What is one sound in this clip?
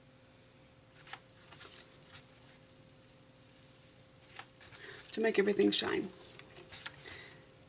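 Paper rustles and crinkles softly under hands.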